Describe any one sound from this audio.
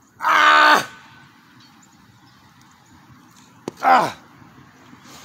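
A young man groans loudly with effort, close by.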